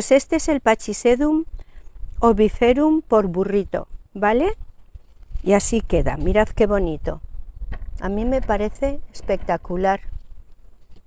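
An older woman talks calmly and clearly into a small microphone, close by.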